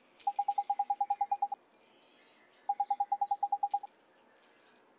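Quick bursts of short, high electronic blips chatter rapidly.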